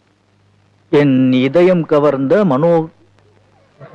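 A man speaks loudly and emotionally nearby.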